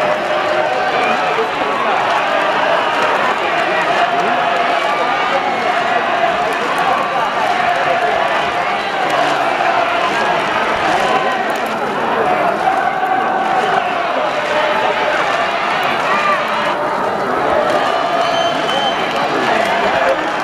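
A large stadium crowd chants and cheers loudly and steadily.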